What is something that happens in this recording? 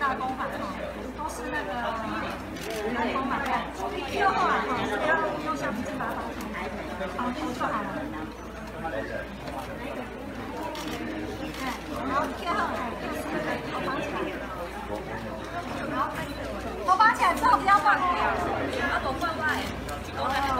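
Young women chatter nearby, outdoors.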